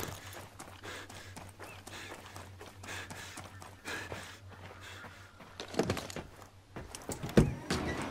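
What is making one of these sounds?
Footsteps crunch on damp ground.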